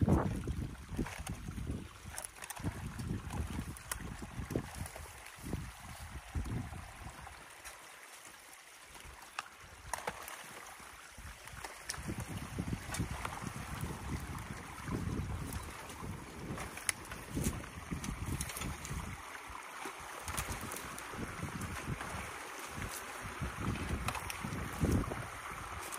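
Sticks and brush snap and rustle as a man pulls them from a shallow stream.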